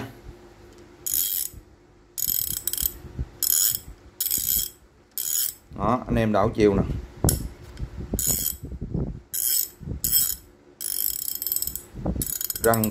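A ratchet wrench clicks in short bursts as it is turned back and forth.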